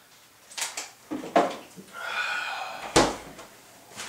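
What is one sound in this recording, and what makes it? A refrigerator door thuds shut.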